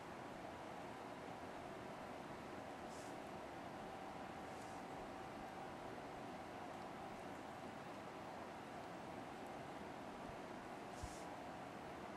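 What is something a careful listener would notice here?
Lipstick rubs softly across lips.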